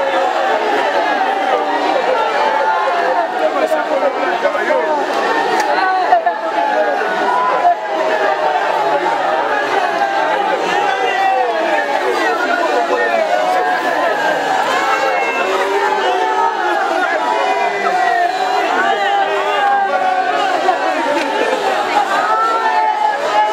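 A large crowd of men and women shouts and chants loudly outdoors.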